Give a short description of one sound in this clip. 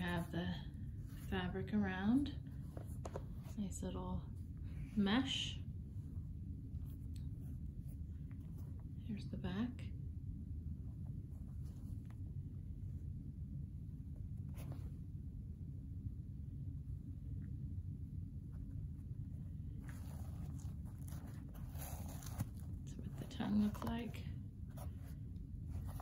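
Fingers rub and tap against a shoe.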